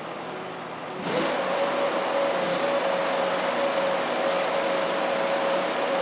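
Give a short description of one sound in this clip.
An electric welder crackles and sizzles steadily.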